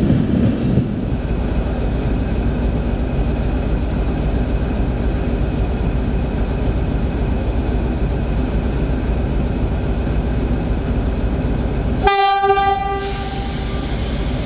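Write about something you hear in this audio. A locomotive engine idles with a low steady hum.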